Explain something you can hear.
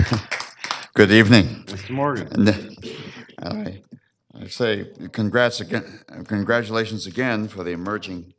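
An elderly man speaks into a microphone in a calm, measured voice.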